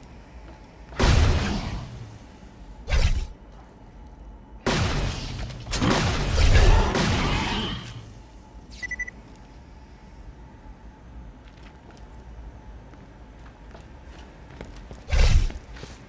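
A gun fires in bursts.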